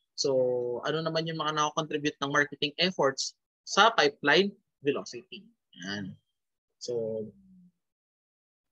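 A man speaks calmly into a microphone, heard as if over an online call.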